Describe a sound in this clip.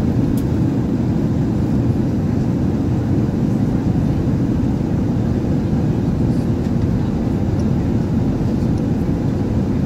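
A jet airliner's engines roar with a steady, low rumble from inside the cabin.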